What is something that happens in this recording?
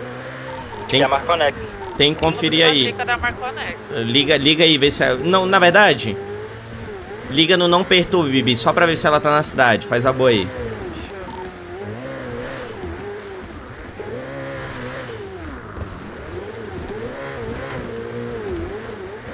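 A car engine revs steadily.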